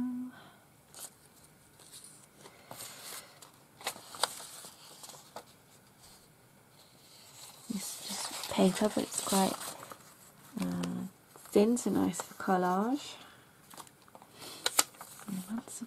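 Paper cards tap and slide against each other.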